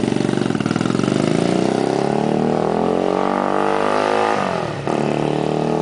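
A motorcycle engine revs up loudly as the bike pulls away.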